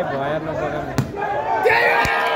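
A ball is kicked with a thud.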